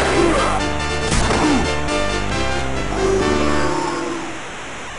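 Chiptune video game music plays loudly, then stops.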